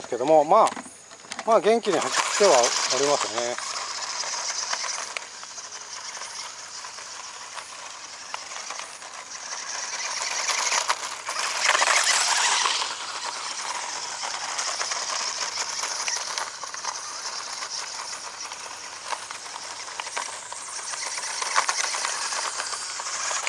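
Small tyres crunch and scatter loose gravel.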